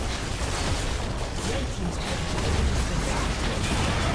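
A game tower collapses with a heavy rumbling crash.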